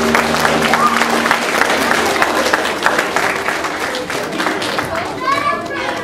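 A crowd of children and adults claps.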